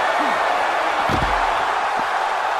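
A heavy body slams onto a hard floor with a thud.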